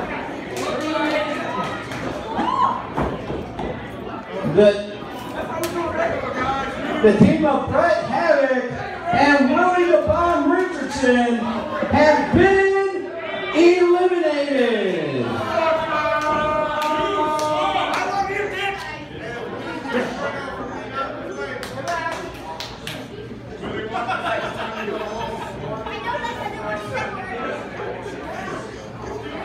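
A crowd of spectators cheers and chants loudly in a large echoing hall.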